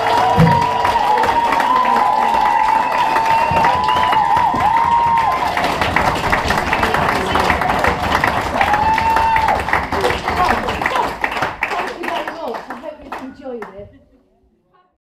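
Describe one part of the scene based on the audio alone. A large crowd chatters and laughs loudly in an echoing hall.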